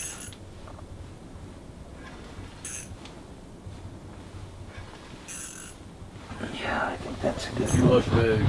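A fishing reel clicks as a line is wound in.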